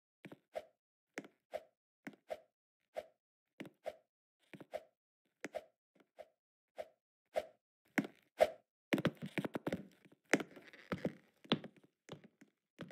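Short thudding game sound effects repeat at a steady pace as a character hops along.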